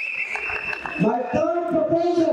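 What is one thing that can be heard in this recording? A young man speaks through a microphone in an echoing hall.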